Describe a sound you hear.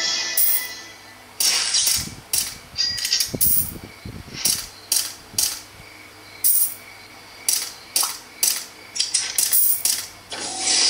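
A mobile game plays short, bright sound effects again and again.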